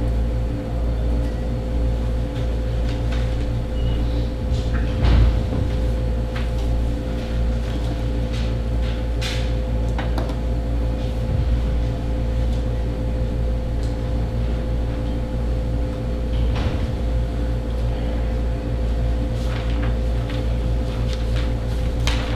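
A man speaks calmly at a distance in a room.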